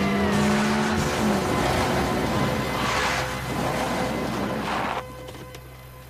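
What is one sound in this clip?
Vehicle engines rumble and tyres crunch on gravel.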